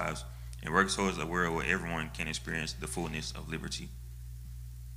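A young man speaks calmly into a microphone over a loudspeaker in an echoing hall.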